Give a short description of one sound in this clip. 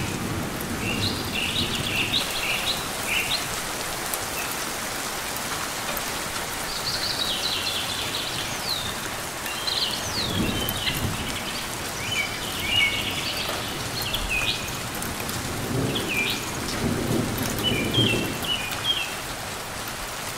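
A small bird chirps in short, high bursts.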